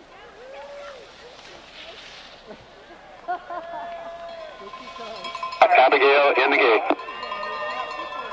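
A crowd of spectators cheers and shouts nearby.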